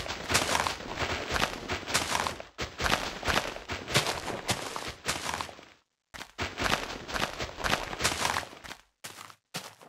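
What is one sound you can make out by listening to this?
Blocks of a tree burst apart with rapid noisy cracks.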